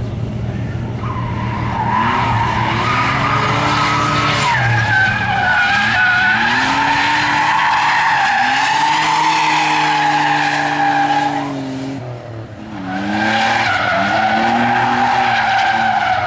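Tyres squeal loudly on tarmac.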